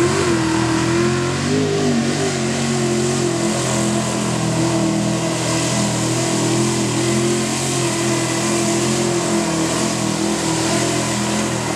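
Mud splashes and sprays under big tyres.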